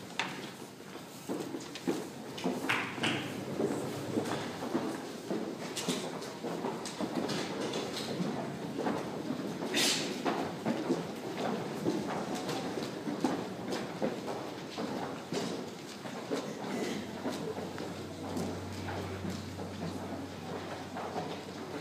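A band plays live music in a large echoing hall.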